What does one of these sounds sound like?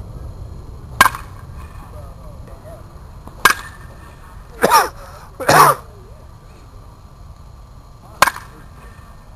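A metal bat cracks sharply against a baseball, several times.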